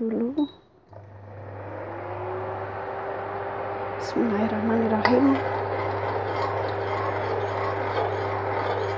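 A cooking hob hums steadily.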